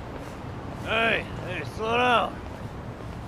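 A man calls out to someone walking away.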